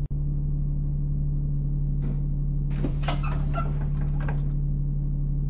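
Bus doors hiss and clatter open.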